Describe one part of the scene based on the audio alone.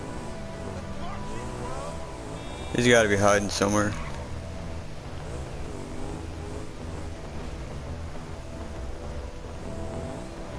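A motorcycle engine hums and revs steadily.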